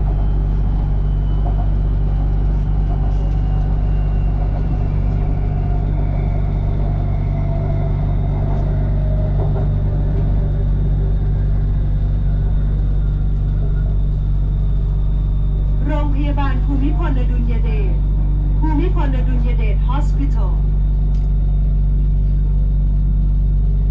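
A train rumbles along the track with a deep steady drone.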